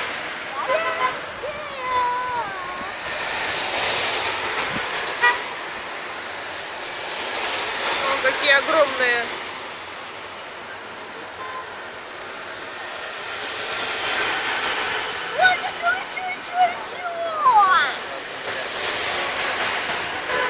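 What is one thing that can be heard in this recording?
Heavy military trucks rumble past on the road, one after another.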